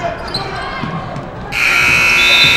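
Sneakers squeak on a hard court in a large echoing gym.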